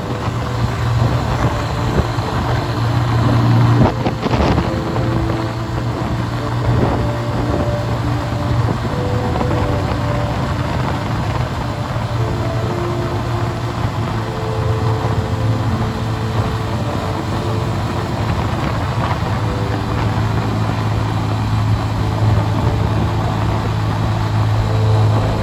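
A motorbike engine hums steadily while riding along.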